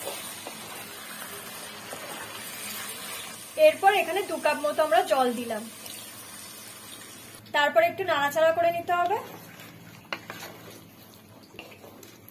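A spatula scrapes and stirs food in a pan.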